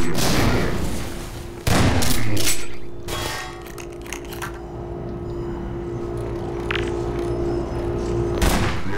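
Loud gunshots ring out with echoes.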